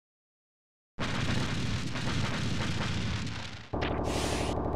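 A blaster fires a shot.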